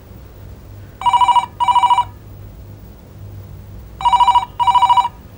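A telephone rings in double bursts nearby.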